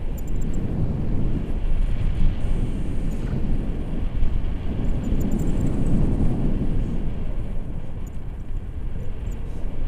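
Strong wind roars and buffets close by, outdoors in the open air.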